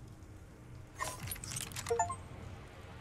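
A metal part clicks and snaps onto a gun.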